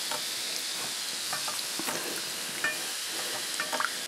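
Chopsticks clink against a metal pot.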